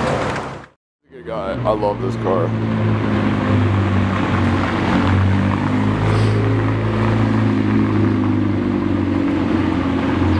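A sports car engine burbles and growls as the car rolls past close by.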